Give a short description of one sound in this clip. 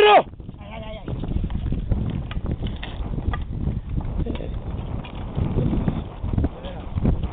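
Loose stones and gravel crunch underfoot as a man scrambles over rocky ground.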